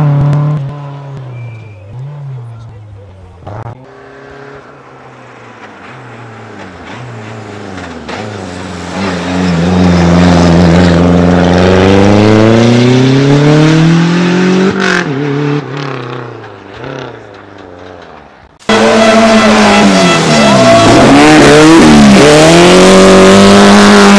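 Rally car engines roar and rev loudly, rising and falling in pitch.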